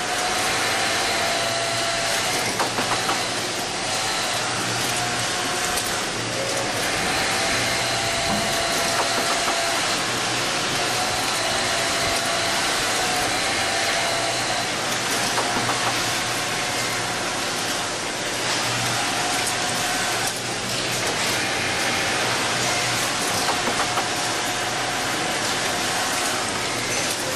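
A sewing machine hums and whirs steadily.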